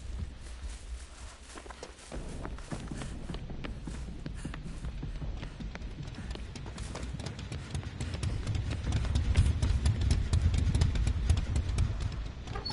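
Quick footsteps run over grass and pavement.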